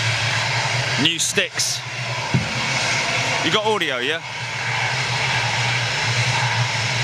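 A jet airliner's engines roar steadily as the plane rolls along a runway.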